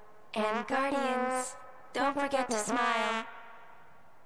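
A trombone plays short sliding notes.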